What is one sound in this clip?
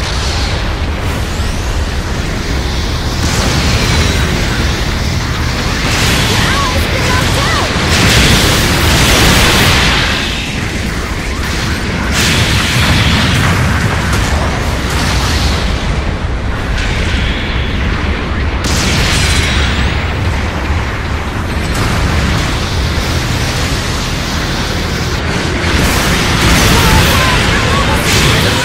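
A robot's guns fire in rapid bursts.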